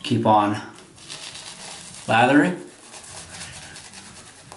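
A shaving brush swishes and scrubs against a lathered cheek.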